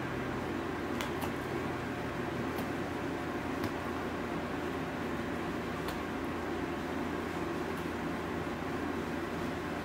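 A dog chews and gnaws on bread close by.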